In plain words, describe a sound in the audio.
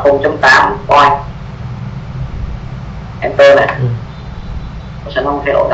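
A young man speaks in short bursts over an online call.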